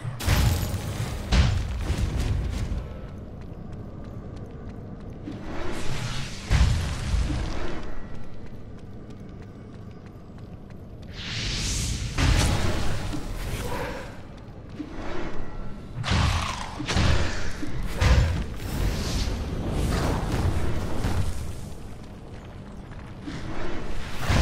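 Blades slash and strike in a fast fight.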